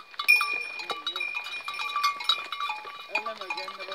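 A young boy calls out to the cattle.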